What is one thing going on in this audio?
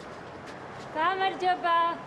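A young woman laughs loudly outdoors.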